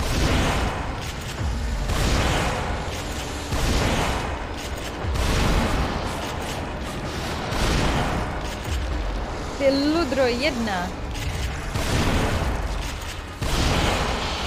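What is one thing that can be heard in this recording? A creature growls and shrieks.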